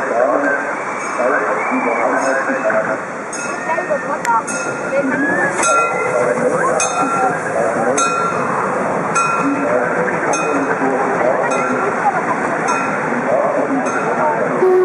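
A steam locomotive chuffs rhythmically as it moves.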